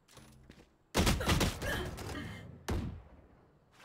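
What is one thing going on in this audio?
Gunshots fire in a rapid burst.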